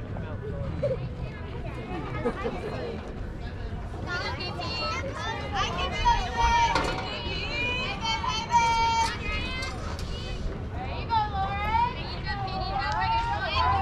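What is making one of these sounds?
Young women shout and chant with animation across an open field.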